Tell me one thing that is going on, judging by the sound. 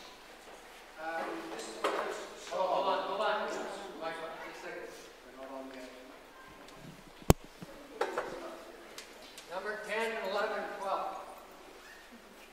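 An elderly man speaks calmly through a microphone in a large echoing hall.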